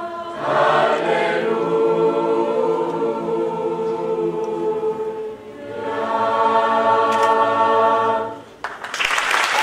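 A large choir sings together in a reverberant hall.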